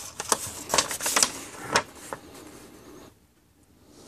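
A paper leaflet rustles.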